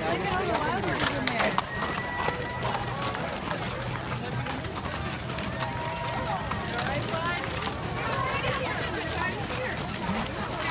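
Many horse hooves clop on a hard, sandy road.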